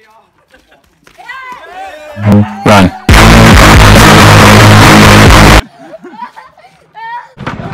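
Boys shout and laugh outdoors while playing.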